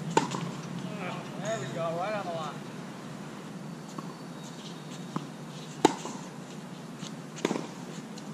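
Tennis rackets strike a ball with sharp pops outdoors.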